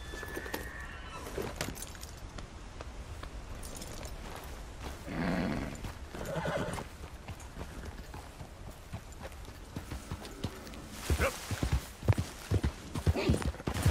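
A horse's hooves thud on rocky ground.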